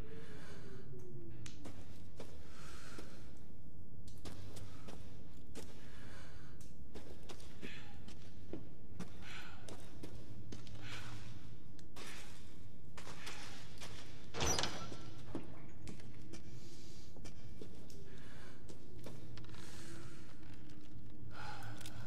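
Footsteps thud slowly across a hard floor.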